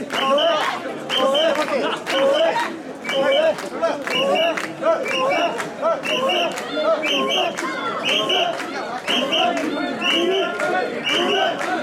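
A crowd of men chants loudly in rhythm, close by, outdoors.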